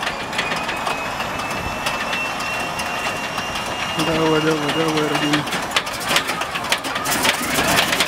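An aircraft propeller engine cranks over slowly with rhythmic clicking.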